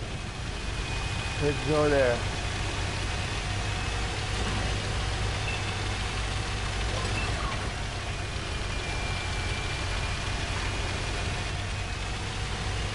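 Tank tracks clatter over rough ground.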